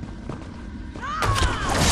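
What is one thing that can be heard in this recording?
A magic spell shimmers and whooshes with a rising ring.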